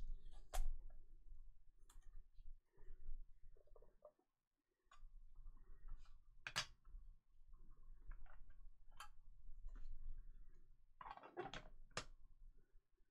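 Plastic card cases click and clack against each other.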